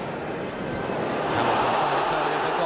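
A crowd cheers louder as a player runs with a ball.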